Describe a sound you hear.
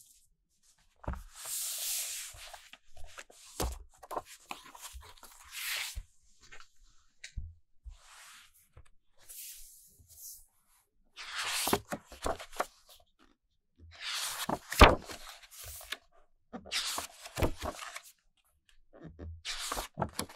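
Glossy pages rustle and flap as they are turned.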